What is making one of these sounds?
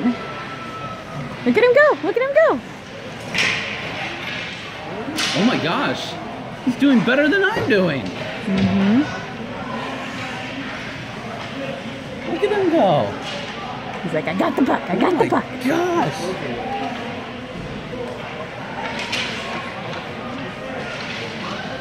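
Skate blades scrape on ice.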